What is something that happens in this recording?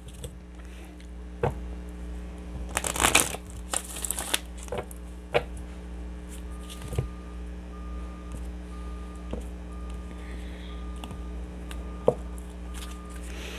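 Cards tap and slap down onto a table.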